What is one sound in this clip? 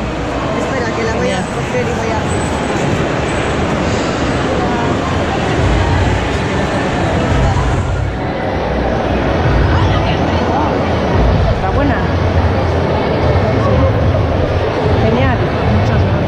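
A crowd chatters throughout in a large echoing hall.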